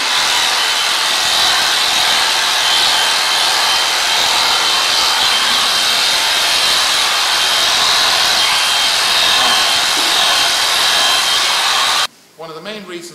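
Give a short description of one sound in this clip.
Electric clippers buzz loudly and steadily close by.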